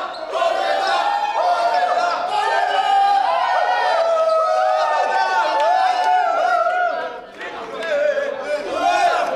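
A group of teenage boys cheers and shouts loudly close by.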